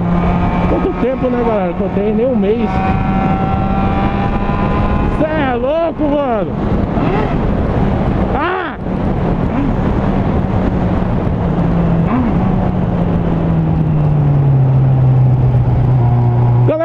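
A motorcycle engine hums steadily up close and drops in pitch near the end.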